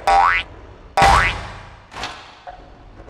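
A truck's wheels thud heavily over speed bumps.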